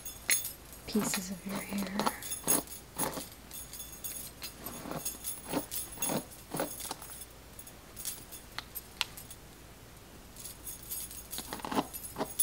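A brush swishes through long hair in repeated strokes.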